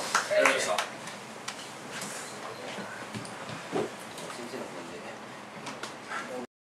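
An audience claps lightly in a room.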